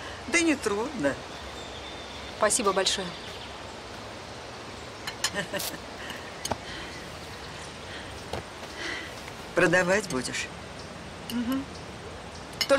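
An elderly woman talks warmly and laughs close by.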